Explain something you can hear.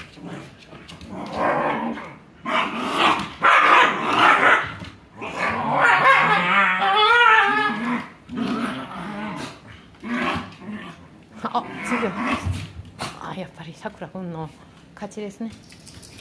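Dogs growl and snarl as they play-fight.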